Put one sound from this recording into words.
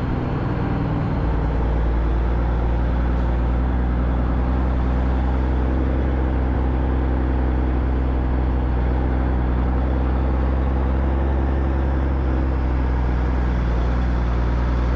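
A motorcycle engine rumbles steadily as it rides.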